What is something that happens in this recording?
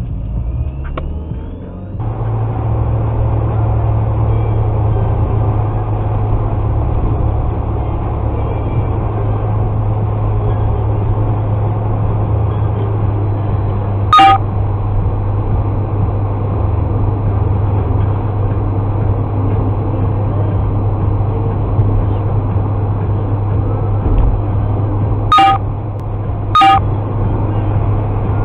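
A car drives along a road with a steady low rumble of engine and tyres.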